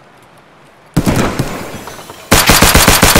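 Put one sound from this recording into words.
Rapid gunfire bursts out loudly and echoes in a room.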